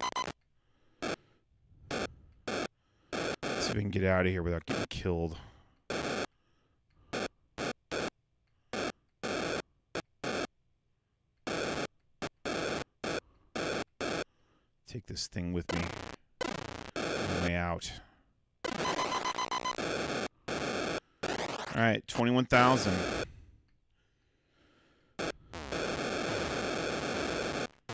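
Electronic video game beeps and blips sound in short bursts.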